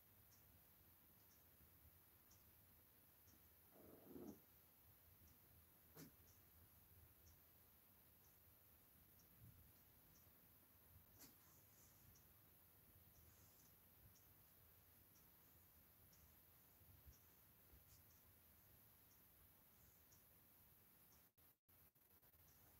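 A sponge dabs softly on a vinyl doll part.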